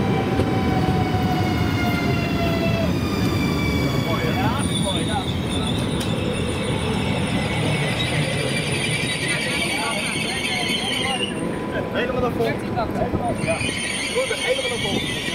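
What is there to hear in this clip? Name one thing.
An electric train hums and whines as it moves slowly past.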